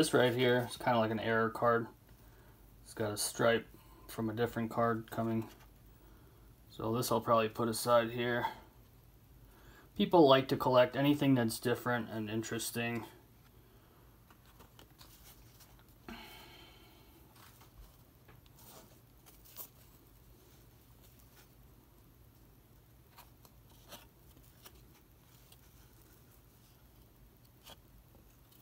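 Cardboard trading cards rustle and tap softly as hands shuffle through them.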